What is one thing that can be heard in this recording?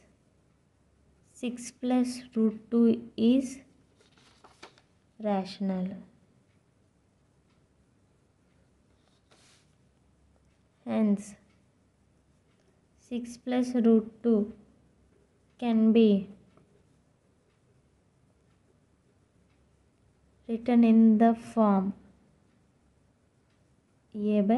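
A felt-tip pen scratches softly on paper.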